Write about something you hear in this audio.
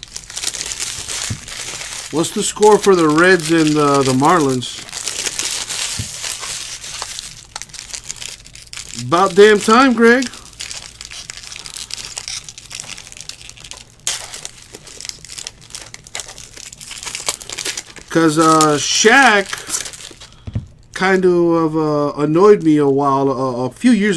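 A plastic wrapper crinkles and rustles as hands tear it open.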